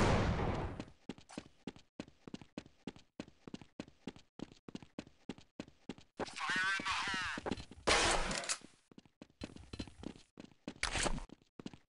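Footsteps thud quickly and evenly on hard ground.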